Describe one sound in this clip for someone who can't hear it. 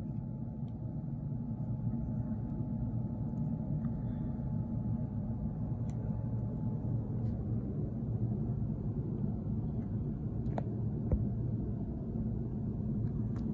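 Small plastic and foam pieces click and tap as hands handle them.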